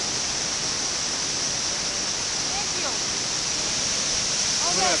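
A waterfall rushes and roars steadily close by.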